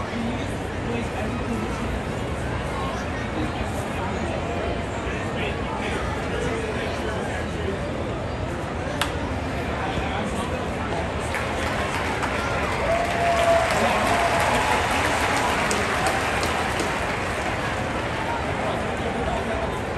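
A large stadium crowd murmurs steadily all around.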